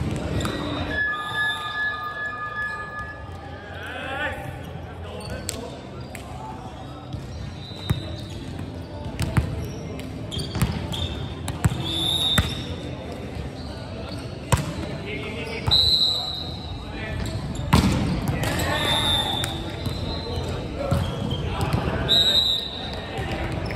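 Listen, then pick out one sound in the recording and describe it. Shoes squeak sharply on a wooden court.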